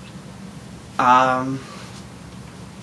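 A young woman speaks briefly close by.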